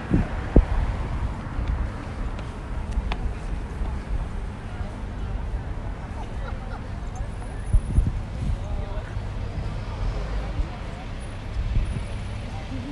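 Wind rumbles outdoors throughout.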